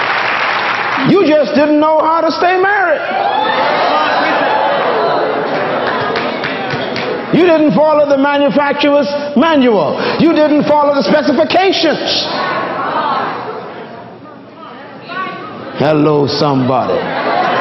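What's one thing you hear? A man preaches with animation through a microphone in an echoing hall.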